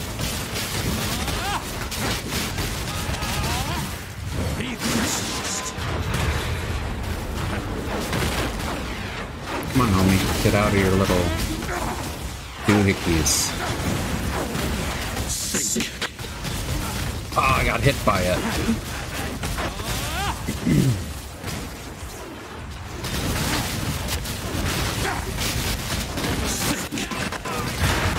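Magical spells crackle and whoosh in bursts.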